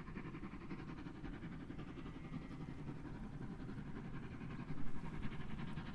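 A steam locomotive chuffs rapidly as it pulls a train.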